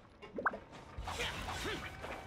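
A magical beam hums and whooshes with energy.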